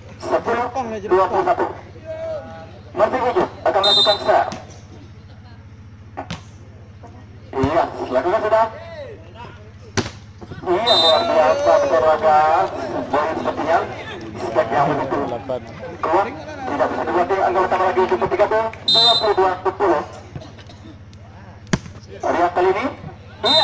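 Young men shout and call out loudly outdoors during a game.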